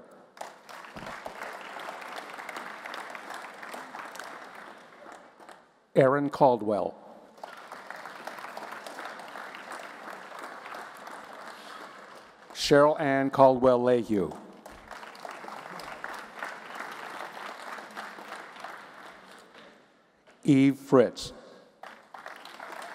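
An audience claps and cheers steadily.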